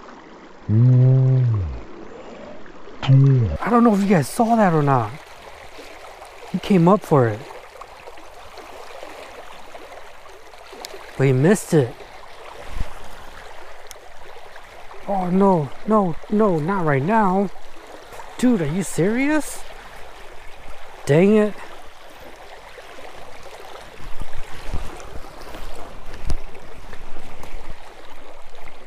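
A shallow river rushes steadily over rocks.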